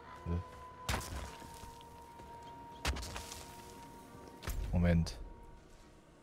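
Magic blasts and impacts crash in a fight.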